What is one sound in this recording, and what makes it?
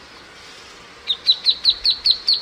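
A duckling cheeps rapidly and shrilly, close by.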